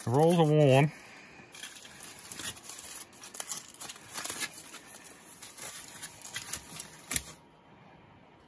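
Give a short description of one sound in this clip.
Aluminium foil crinkles and rustles as it is unwrapped by hand.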